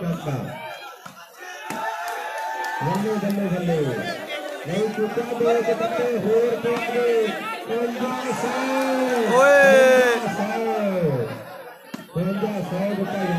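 A crowd of men cheers and chants loudly outdoors.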